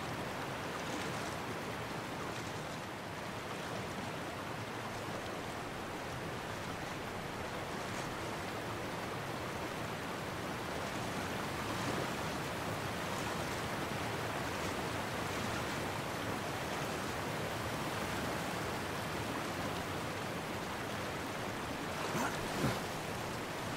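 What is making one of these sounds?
Water rushes steadily over a weir.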